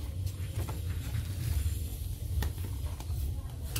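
Cardboard pages flap as they are turned.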